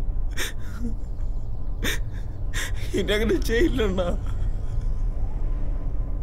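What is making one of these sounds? A young man sobs and wails.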